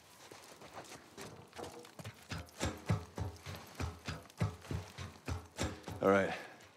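Footsteps thud on metal stairs, one after another.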